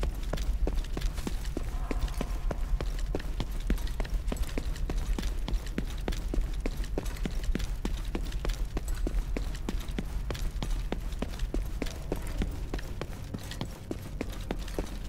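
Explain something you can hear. Quick footsteps thud and shuffle on a hard floor.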